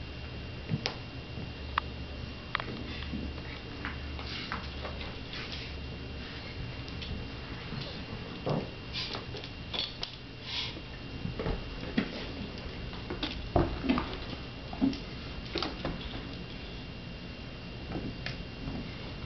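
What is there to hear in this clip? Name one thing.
A dog gnaws and scratches at a rubber ball.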